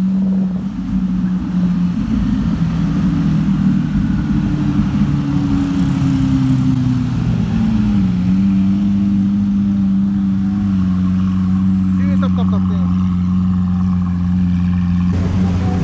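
A sports car engine rumbles deeply at low speed.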